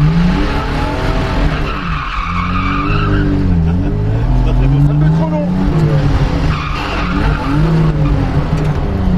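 A car engine revs hard, its pitch rising and falling.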